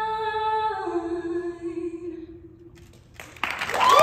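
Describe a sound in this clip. A young woman sings through a microphone, holding a long final note.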